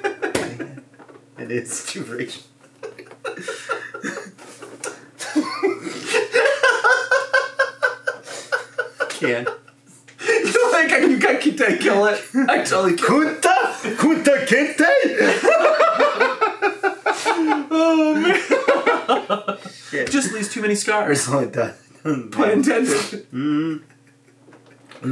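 A bald man talks and chuckles, close to a microphone.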